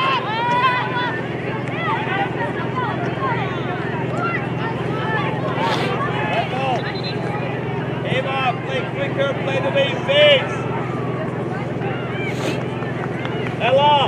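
A crowd of spectators chatters and cheers outdoors at a distance.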